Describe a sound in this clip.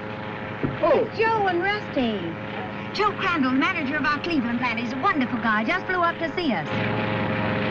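A woman speaks with excitement up close.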